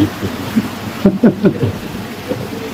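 A man laughs loudly up close.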